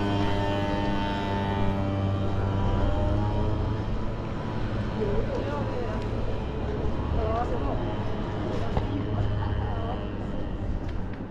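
A car engine idles nearby with a steady low hum.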